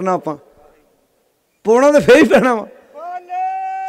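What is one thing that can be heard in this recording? A man laughs heartily into a microphone.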